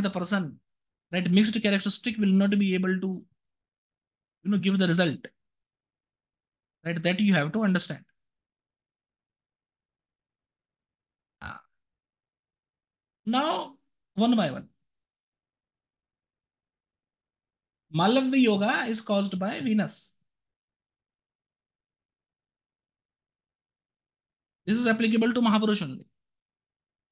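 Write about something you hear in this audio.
A man speaks calmly through an online call microphone, pausing between phrases.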